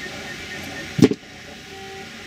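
Metal pliers click as they are picked up.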